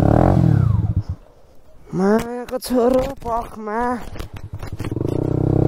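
A motorcycle engine stalls and is cranked over several times.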